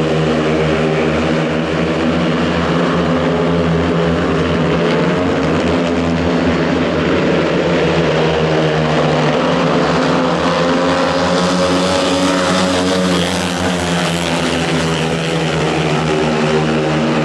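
Several motorcycle engines roar loudly around a track, rising and falling.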